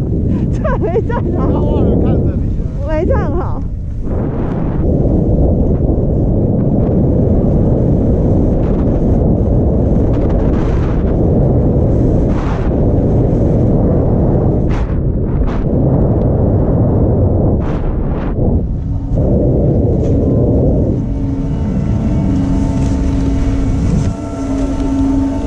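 Wind rushes and buffets against the microphone.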